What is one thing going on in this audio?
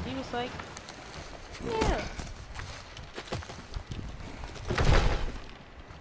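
A heavy log scrapes and thuds as it is pushed.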